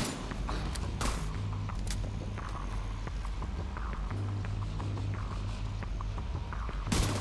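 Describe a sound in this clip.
A single rifle shot cracks.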